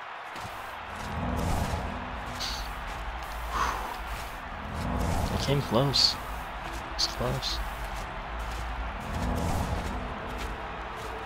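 A magic spell whooshes and shimmers several times.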